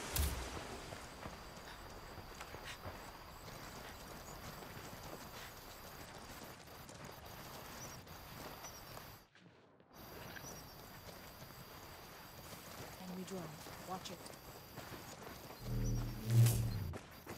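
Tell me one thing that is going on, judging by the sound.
Footsteps run over dirt and gravel.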